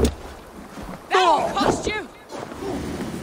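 A fiery blast bursts with a roar.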